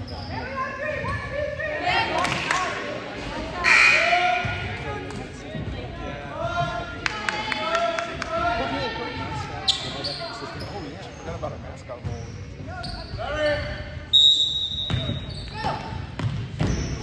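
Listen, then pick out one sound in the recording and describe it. Young women and girls talk and shout in a large echoing gym.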